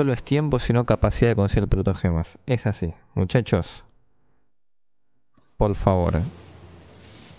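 A young man talks loudly and excitedly into a microphone.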